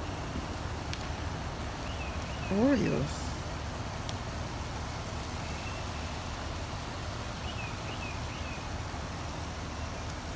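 A squeeze bottle sputters as barbecue sauce squirts out.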